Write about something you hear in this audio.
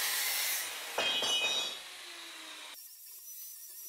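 An angle grinder whirs as it spins down.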